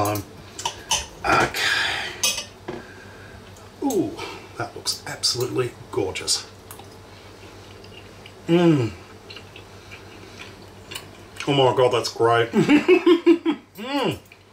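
A man chews food.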